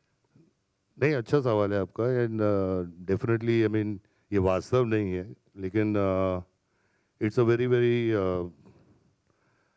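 A middle-aged man speaks into a microphone over loudspeakers, in a deep, measured voice.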